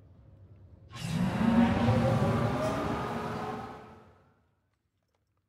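A transit pod whooshes past with a low rumble.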